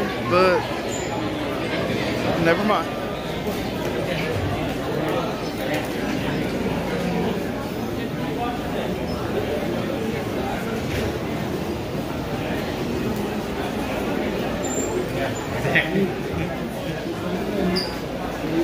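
A crowd of men and women chatter all around in a large echoing hall.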